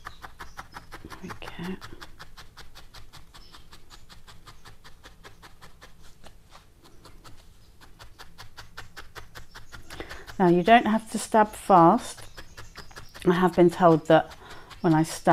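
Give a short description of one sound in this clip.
A felting needle pokes rapidly and repeatedly into wool on a foam pad.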